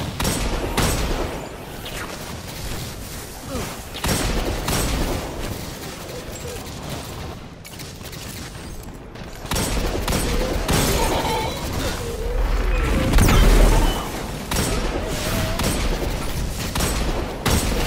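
Electric blasts crackle and fizz.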